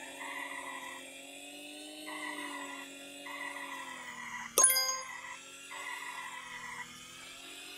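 A small kart engine hums steadily, rising and falling in pitch.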